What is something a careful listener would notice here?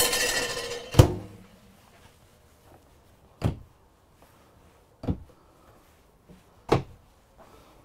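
A metal rack clicks and knocks as it is pulled down and pushed up.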